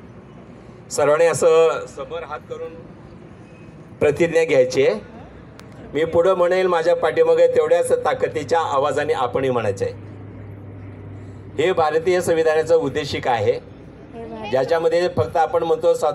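A man sings loudly through a loudspeaker outdoors, in bursts.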